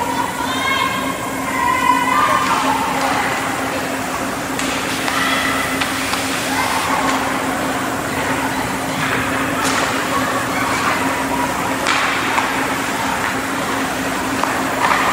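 Skates scrape and hiss across ice in a large echoing rink.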